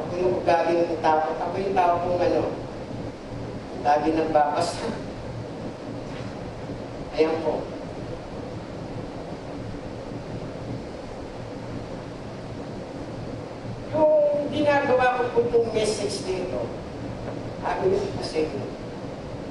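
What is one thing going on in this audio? A man speaks over a loudspeaker in a large echoing hall, in bursts with long pauses.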